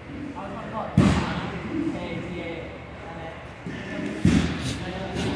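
Sharp thuds of bodies hitting the mat ring through an echoing room.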